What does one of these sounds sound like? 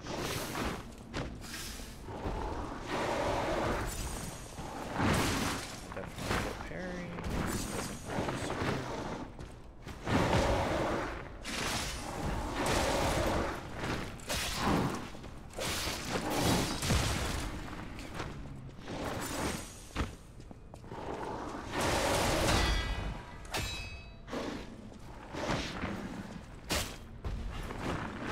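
A monster growls and roars loudly.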